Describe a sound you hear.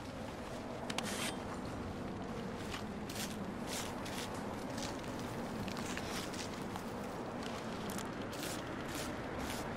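A knife cuts and tears through an animal carcass.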